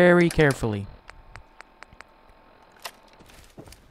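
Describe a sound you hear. Short electronic clicks sound as a menu is scrolled.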